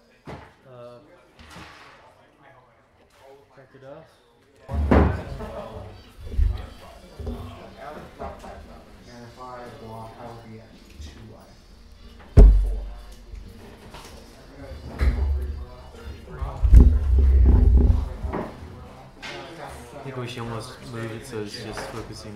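Several men talk casually nearby.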